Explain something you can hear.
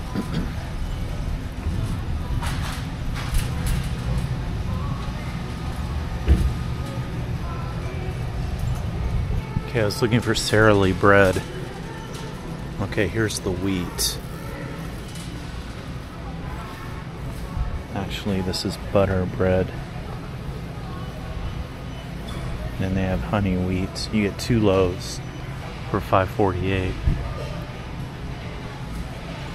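A shopping cart rolls and rattles along a hard floor.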